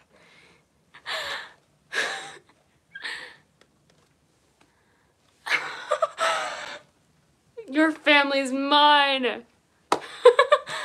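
A young person speaks close by in short, lively bursts.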